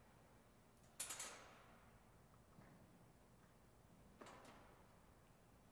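Objects thump and clatter on a table, echoing in a large hall.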